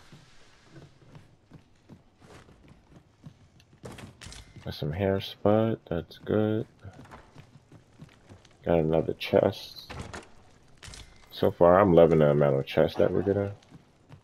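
Footsteps thud softly on a wooden floor.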